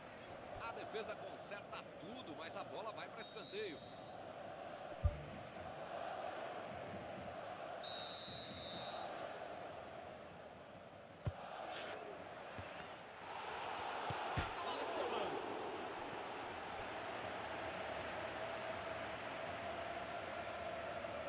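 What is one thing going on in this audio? A stadium crowd roars and chants steadily.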